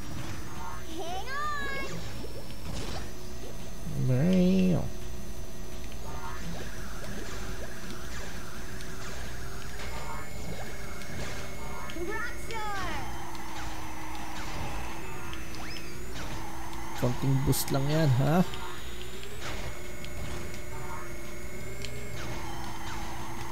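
A kart engine hums steadily.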